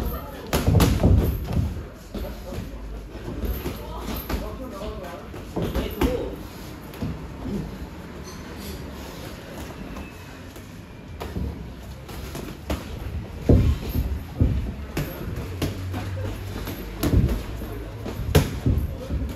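Boxing gloves thud against pads and headgear in sharp bursts.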